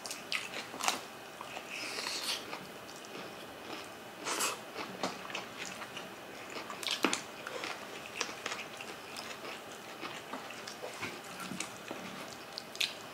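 Two women chew food noisily close to a microphone.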